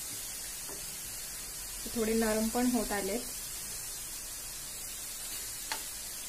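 Pineapple pieces sizzle softly in a hot pan.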